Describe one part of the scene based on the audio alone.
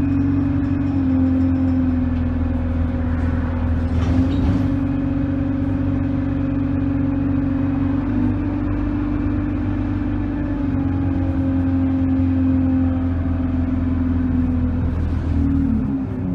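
The bus rattles and creaks as it rolls along.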